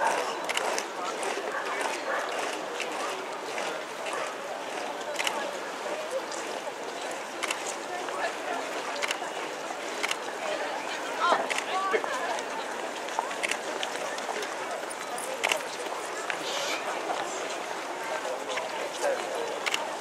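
Footsteps of a large crowd shuffle along the street.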